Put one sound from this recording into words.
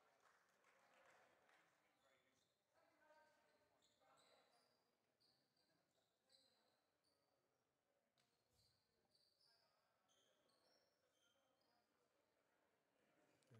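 A man talks quietly to a group.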